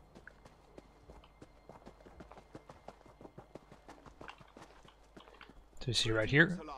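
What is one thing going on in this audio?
Quick footsteps run over dirt and grass.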